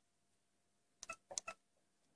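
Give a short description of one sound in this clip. Small buttons click under a finger.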